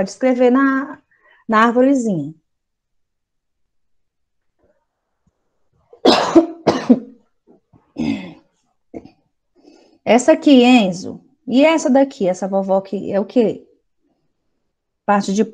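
A woman speaks calmly and clearly over an online call, pausing between phrases.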